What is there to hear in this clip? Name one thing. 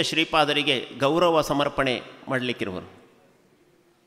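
A man chants loudly through a microphone, echoing in a large hall.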